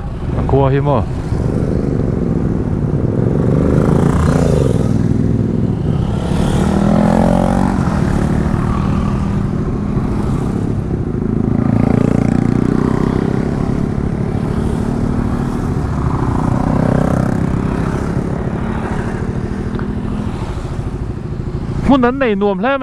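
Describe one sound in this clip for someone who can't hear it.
Motorcycle engines drone steadily as riders pass one after another close by.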